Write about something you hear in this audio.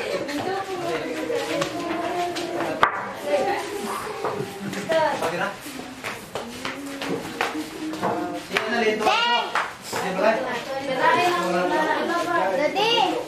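A crowd of men and women talk and chatter together nearby.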